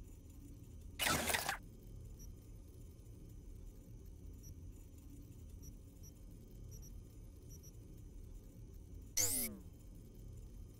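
A digital interface makes short whooshing sound effects.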